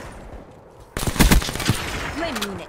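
Gunfire rattles in a quick burst.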